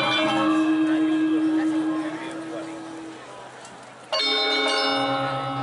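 A gamelan ensemble plays ringing metal percussion, fading and then striking loudly again.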